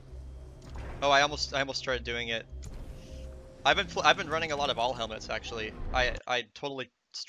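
A young man talks animatedly close to a microphone.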